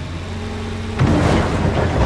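Soil thuds into a dump truck bed.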